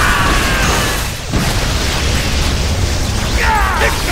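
A burst of energy explodes with a whooshing roar.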